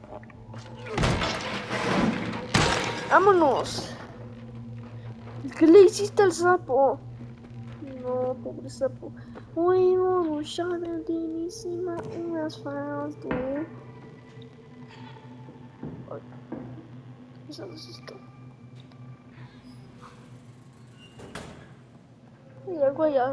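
Small footsteps patter on creaky wooden floorboards.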